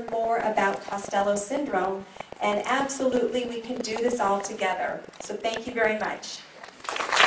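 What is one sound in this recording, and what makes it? A middle-aged woman speaks calmly into a microphone, her voice carried over a loudspeaker.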